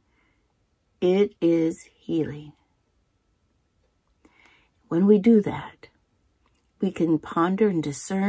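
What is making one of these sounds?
An elderly woman speaks close to a microphone in a lively, storytelling voice, with pauses.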